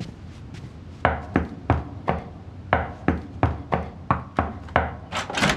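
A woman knocks repeatedly on a door.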